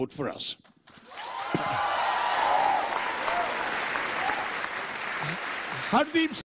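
A large audience claps and cheers in a big hall.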